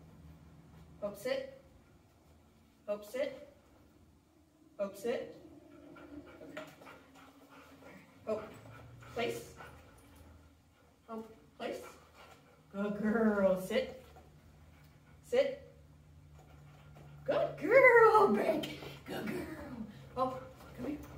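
A man gives short, calm spoken commands to dogs.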